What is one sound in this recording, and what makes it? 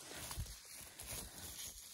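Plastic rustles against low plants.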